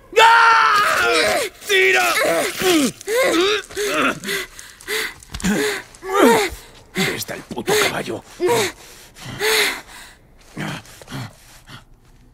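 A young girl speaks urgently and with strain, close by.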